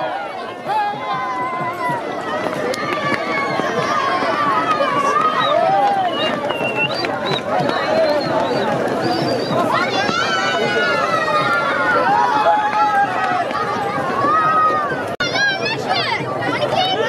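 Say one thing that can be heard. A large outdoor crowd of men and boys cheers and shouts excitedly.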